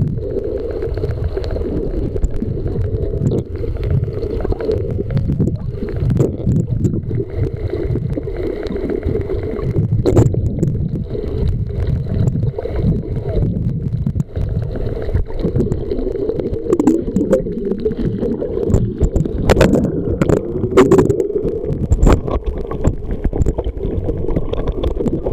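Muffled underwater rumbling and swirling water fill the sound.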